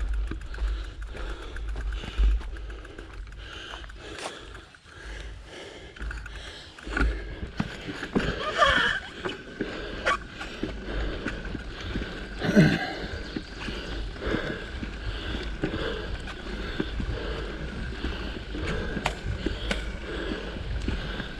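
Footsteps crunch on dry leaves along a dirt path.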